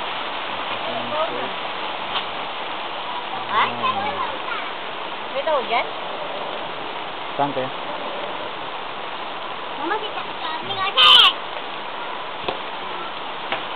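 Young children shout and call out nearby.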